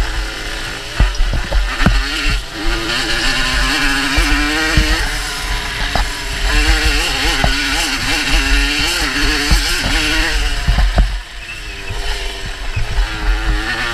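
A dirt bike's suspension thumps and rattles over bumps.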